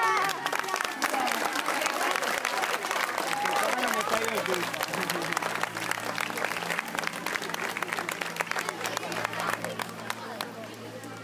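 A crowd of children cheers and claps outdoors.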